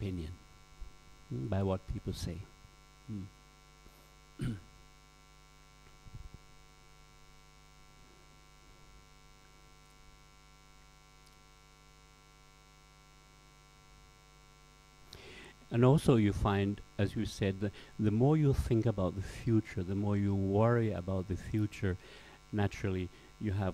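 A middle-aged man speaks with animation, close by, through a microphone.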